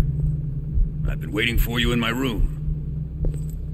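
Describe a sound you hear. A man shouts angrily.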